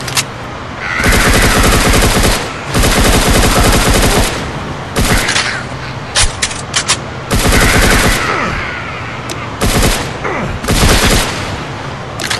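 Gunfire rattles in loud, rapid bursts.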